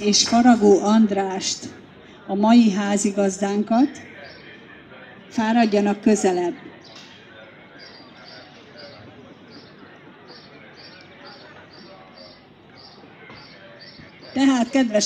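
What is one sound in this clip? A middle-aged woman sings in short phrases into a microphone, heard through loudspeakers outdoors.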